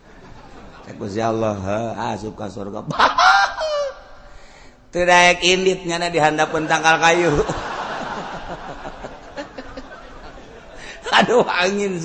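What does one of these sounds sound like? A man chants in a drawn-out, melodic voice.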